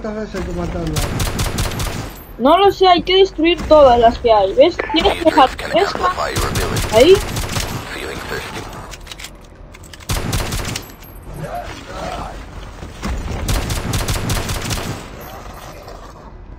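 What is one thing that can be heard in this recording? Rapid gunshots ring out in bursts.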